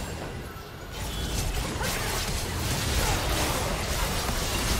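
Game spells whoosh and blast in a busy fight.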